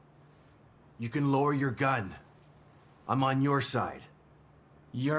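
A man speaks urgently, pleading, close by.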